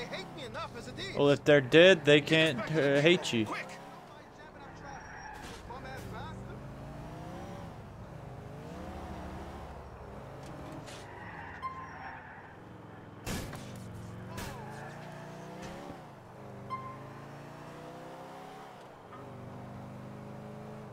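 A car engine hums and revs up and down.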